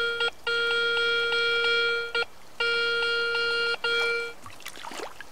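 A metal detector gives a steady high beeping tone.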